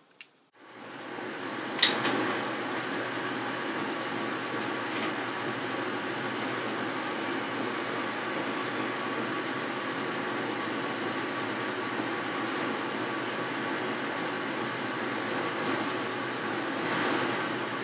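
A cutting tool scrapes against spinning metal.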